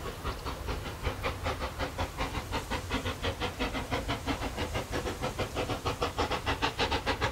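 A steam locomotive chuffs rapidly and steadily as it approaches, growing louder.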